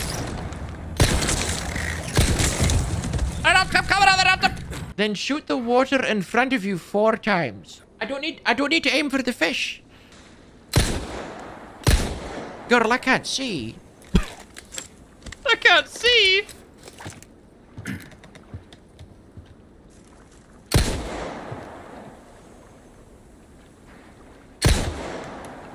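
A pistol fires sharp single shots.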